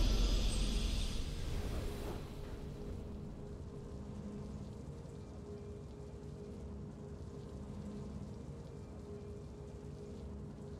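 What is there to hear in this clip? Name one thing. A triumphant game fanfare swells and then fades to a low, steady hum.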